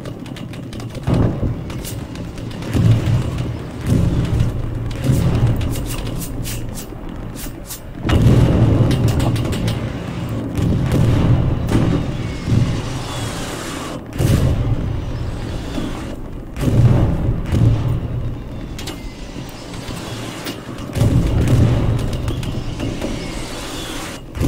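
Heavy explosions boom and rumble in the distance.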